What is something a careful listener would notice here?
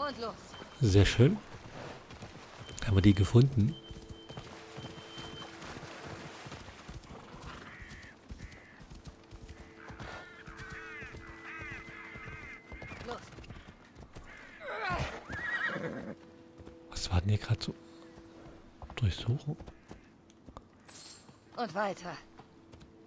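A horse's hooves thud steadily on the ground at a gallop.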